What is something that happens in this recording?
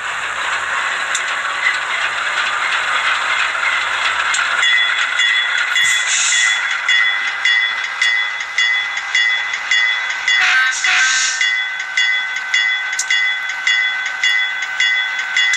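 A small model train motor whirs steadily.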